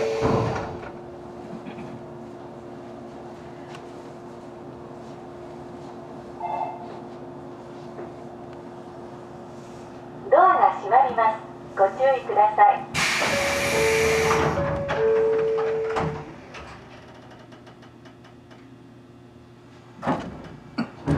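A train's engine hums steadily while standing still.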